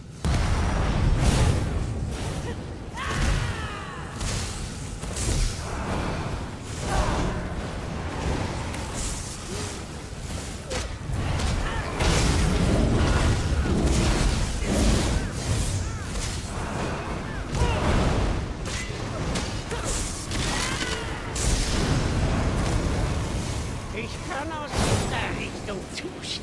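Heavy blows thud and clash in a fight.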